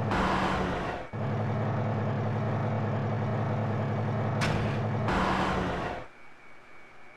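A heavy machine hums and whirs loudly, then stops.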